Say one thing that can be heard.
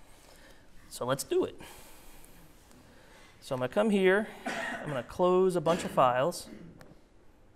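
A man speaks through a microphone in a large room, in short bursts.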